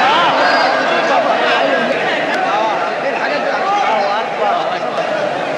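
A man chants in a long, wavering melodic voice through a microphone.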